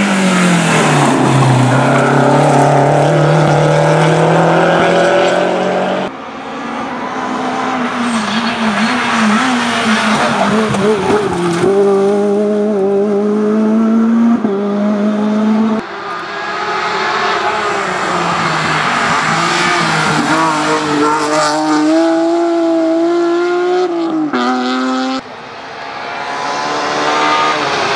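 A rally car engine revs hard and roars past up close.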